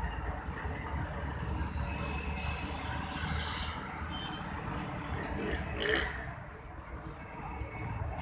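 A diesel locomotive rumbles as it approaches in the distance.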